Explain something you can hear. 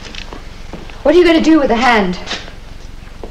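A woman asks something in a worried voice nearby.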